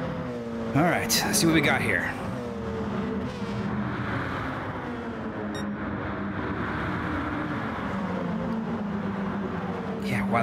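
Racing car engines roar and whine steadily as the cars speed along.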